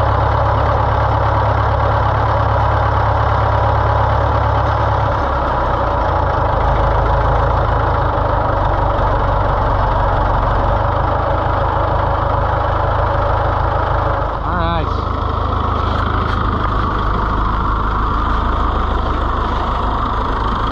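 A tractor engine rumbles loudly and steadily.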